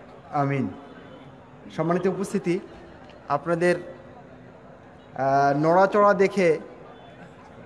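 A man speaks loudly into a microphone over a loudspeaker, in short bursts with pauses.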